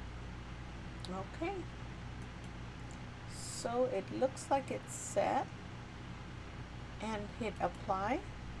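A middle-aged woman speaks calmly into a nearby microphone.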